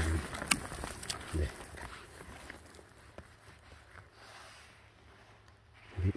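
A metal tool scrapes and digs into dry pine needles and soil.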